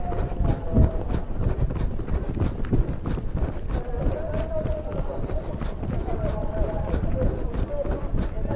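Running footsteps slap steadily on a track close by.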